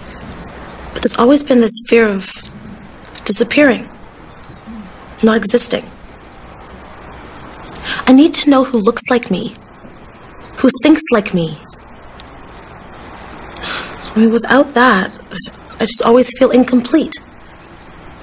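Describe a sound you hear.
A woman speaks calmly and close by, in short exchanges.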